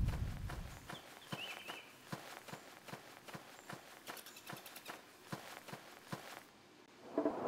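Footsteps tread steadily on soft ground.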